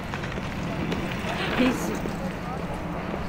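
A bicycle rolls past close by.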